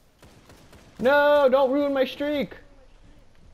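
A gun fires a burst of shots.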